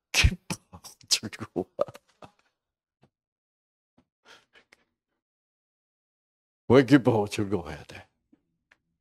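An elderly man speaks through a microphone in bursts, with pauses.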